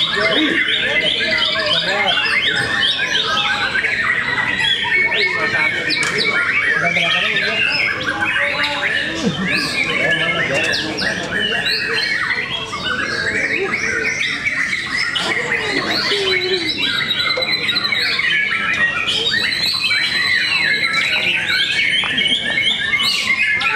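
Many caged songbirds sing and chirp loudly all at once.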